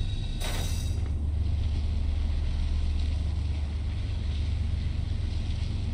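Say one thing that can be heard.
A heavy crate scrapes along as it is pushed.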